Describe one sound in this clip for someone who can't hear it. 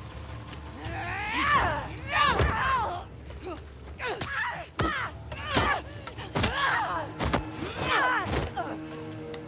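A man screams in pain, close by.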